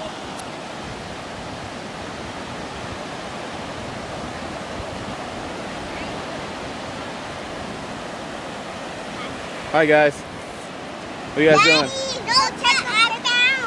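Waves wash steadily onto the shore outdoors.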